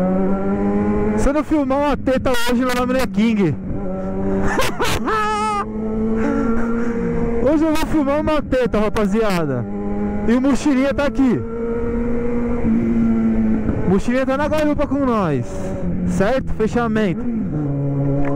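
A motorcycle exhaust pops and crackles as the throttle is blipped.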